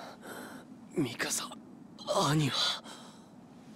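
A young man speaks weakly and with strain, close by.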